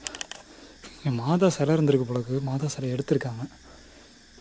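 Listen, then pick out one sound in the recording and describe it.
A man speaks close by, calmly explaining.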